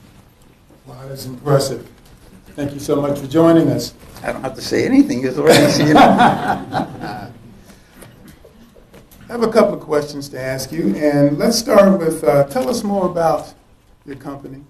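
A man speaks into a microphone over a loudspeaker, calmly addressing an audience.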